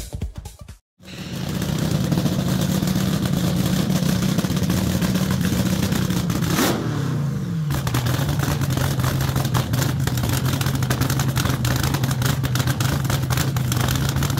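A race car engine idles with a loud, steady, throbbing rumble close by.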